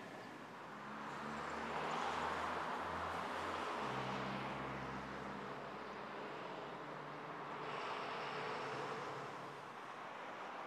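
A truck engine rumbles low as it passes.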